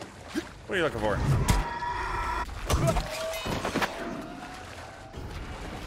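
Metal weapons clash and strike in a fight.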